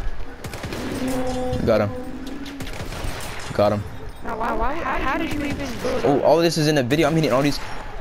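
A rifle fires sharp, loud shots.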